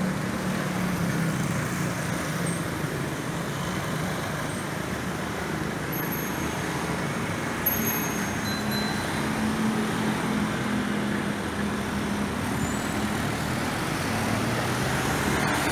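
A van engine idles and then pulls away.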